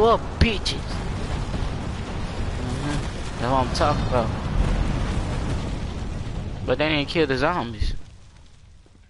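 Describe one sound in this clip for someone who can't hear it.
Heavy debris crashes down with a deep rumble.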